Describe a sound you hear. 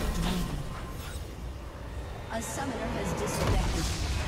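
Magical spell effects whoosh and crackle in a battle.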